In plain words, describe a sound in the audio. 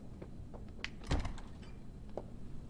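A heavy door opens.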